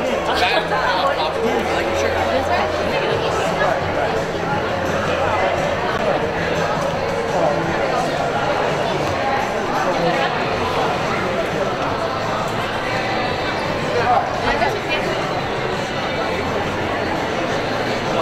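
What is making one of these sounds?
Young women chat and laugh nearby.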